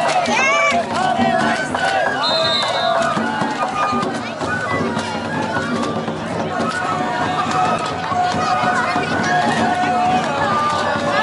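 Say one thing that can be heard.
A crowd of men chants and shouts loudly together outdoors.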